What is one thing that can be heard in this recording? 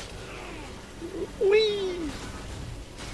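A man exclaims loudly and excitedly, close to a microphone.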